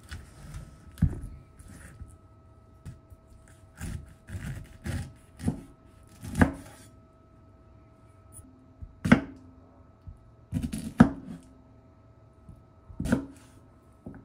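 A knife knocks against a wooden cutting board.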